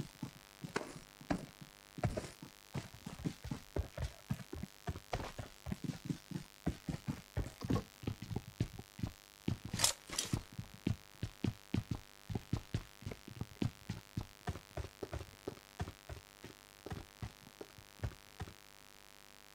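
Footsteps thud quickly and steadily on hard ground.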